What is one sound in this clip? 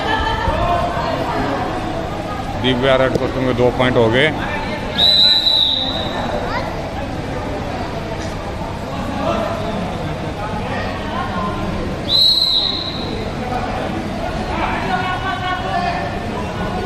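Men shout and cheer in an echoing hall.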